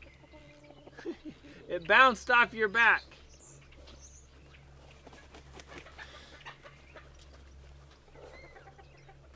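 Hens cluck softly now and then.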